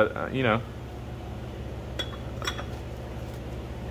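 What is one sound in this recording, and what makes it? Glass flasks clink together.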